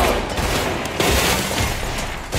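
Glass shatters and debris clatters.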